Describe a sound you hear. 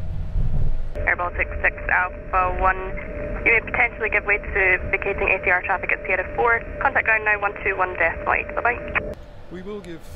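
A woman speaks calmly over a tinny radio.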